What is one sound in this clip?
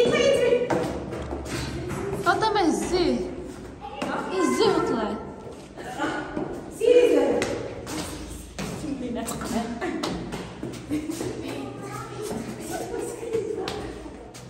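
Footsteps climb stairs.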